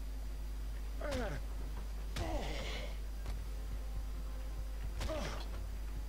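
A man grunts and groans while fighting.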